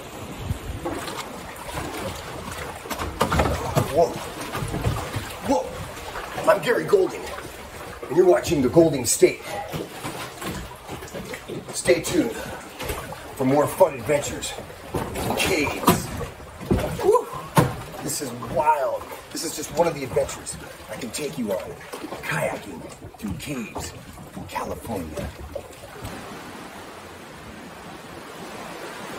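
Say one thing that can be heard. Waves slosh against rocks.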